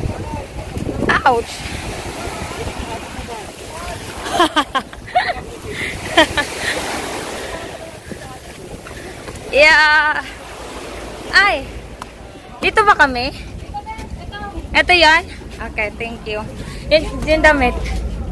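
Water laps and splashes against a boat.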